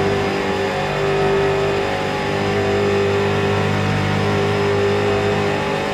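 A race car engine roars steadily at high speed, heard from inside the car.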